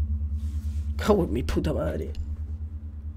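A young man speaks briefly with animation into a close microphone.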